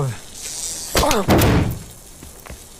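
A blast bangs sharply outdoors.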